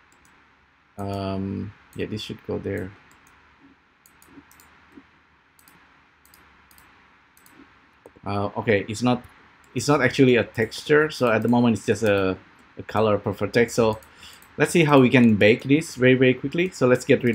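A man speaks calmly close to a microphone, in short bursts with pauses.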